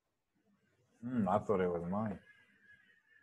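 A second young man answers calmly over an online call.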